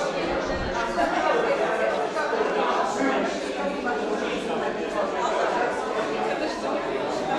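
A crowd of adult men and women chat at once nearby.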